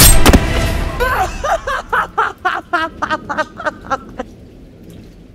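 A woman laughs loudly and wickedly.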